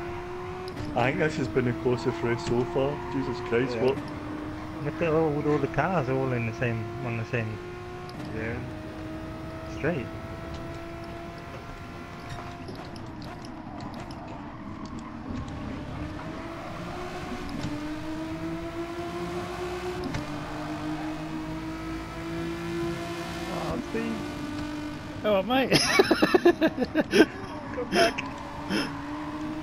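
A racing car engine roars, climbing in pitch and dropping with each gear change.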